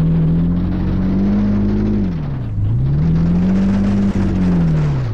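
A car engine drones steadily, dips low in pitch, then revs back up.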